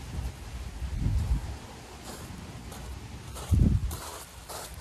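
A heavy stone block thuds onto stone.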